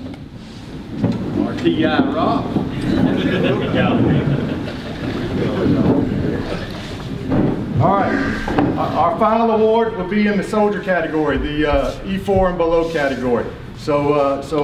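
A man speaks loudly to a room, heard through a microphone.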